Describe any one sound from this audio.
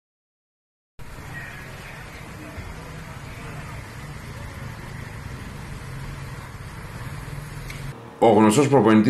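Traffic rumbles on a city street outdoors.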